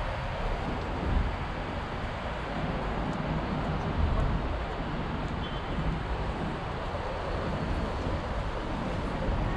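Gusty wind rumbles across the microphone outdoors.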